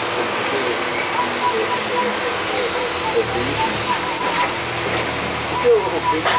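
Road noise rumbles steadily inside a moving bus.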